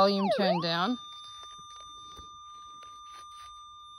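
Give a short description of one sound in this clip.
A metal detector holds a steady high tone.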